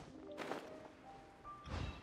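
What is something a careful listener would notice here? A glider's wings whoosh through the air.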